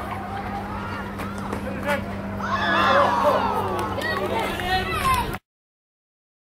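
A crowd of spectators shouts and cheers nearby.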